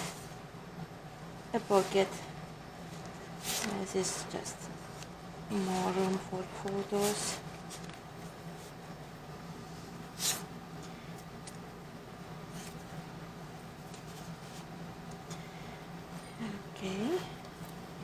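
Paper rustles and flaps as hands handle card sheets.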